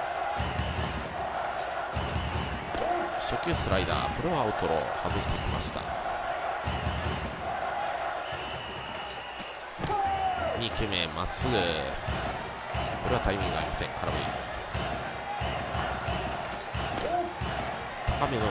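A stadium crowd cheers and chants steadily.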